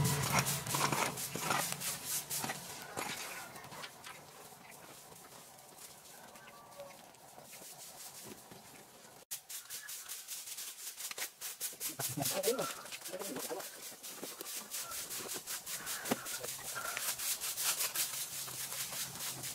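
Straw brooms sweep and scratch across dry leaves and dirt.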